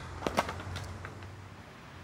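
A skateboard clatters onto the ground.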